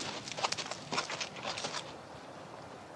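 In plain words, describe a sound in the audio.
A horse's hooves clop on dirt.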